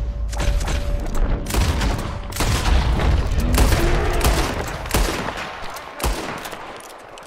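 Gunshots ring out loudly outdoors.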